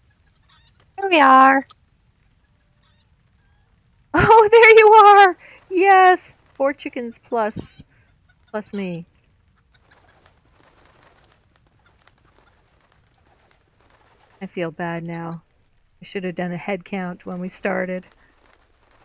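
A chicken clucks and squawks in short bursts.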